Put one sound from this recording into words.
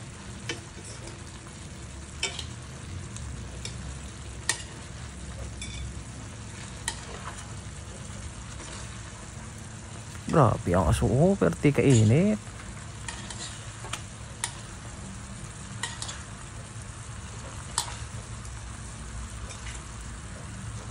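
Metal tongs click and scrape against a pan.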